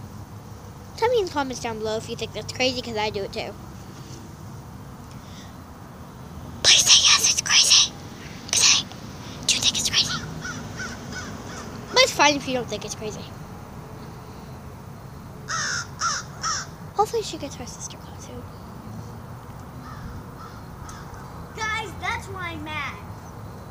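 A young girl talks close to the microphone in bursts, with pauses between.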